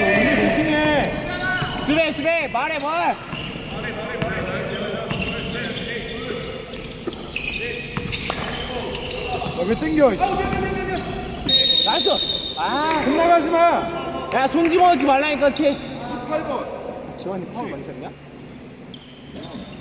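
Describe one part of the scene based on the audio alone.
A basketball thumps as it bounces on the court.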